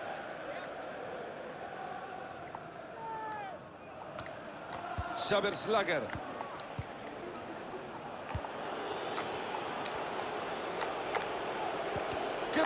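A stadium crowd murmurs and cheers steadily throughout.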